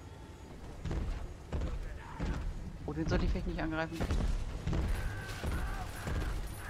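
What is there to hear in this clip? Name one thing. Heavy metal footsteps stomp close by.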